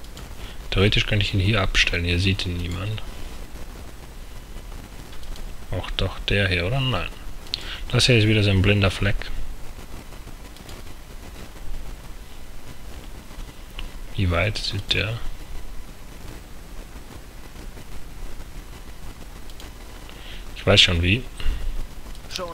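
A man talks into a microphone in short, calm bursts.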